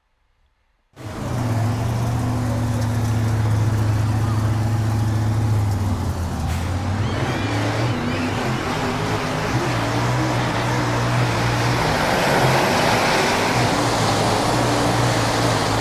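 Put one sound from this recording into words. A race car engine roars loudly at high revs.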